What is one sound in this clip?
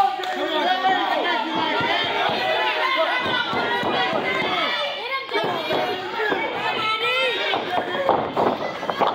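A large crowd cheers and shouts loudly in an echoing hall.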